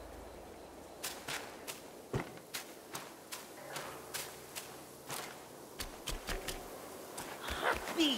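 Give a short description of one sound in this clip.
Footsteps crunch on leaves and dirt.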